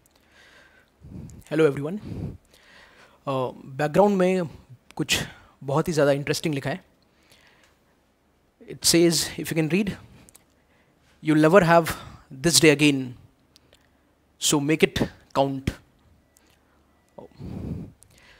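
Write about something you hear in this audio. A young man speaks with animation into a close microphone, pausing between phrases.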